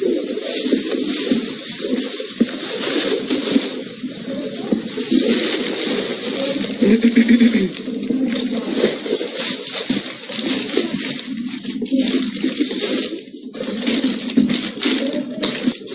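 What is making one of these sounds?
A young woman talks, muffled.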